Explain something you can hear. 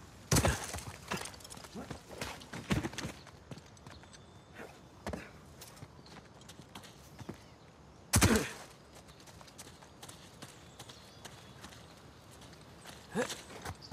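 Footsteps crunch on stone and grass.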